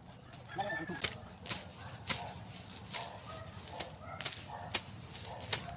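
A blade chops sharply into plants and soil, again and again.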